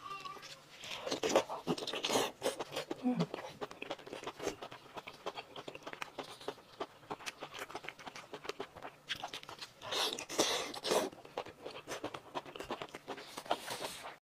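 A young woman slurps and chews food loudly close to a microphone.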